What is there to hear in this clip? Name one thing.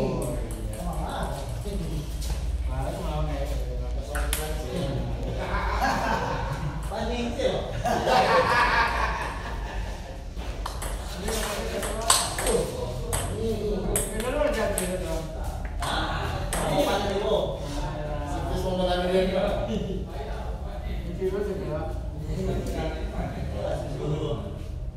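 A ping-pong ball clicks back and forth on paddles and a table.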